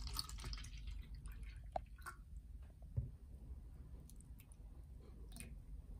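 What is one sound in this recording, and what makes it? Water pours into a plastic cup.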